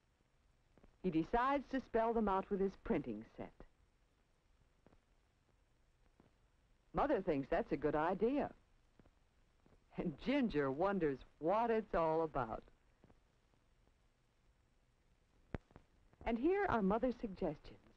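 A young boy talks calmly.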